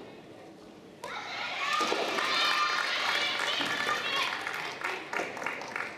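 A crowd of young spectators cheers and shouts.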